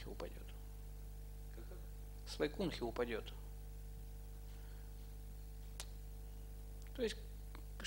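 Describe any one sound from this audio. A middle-aged man speaks calmly into a microphone, in short phrases with long pauses.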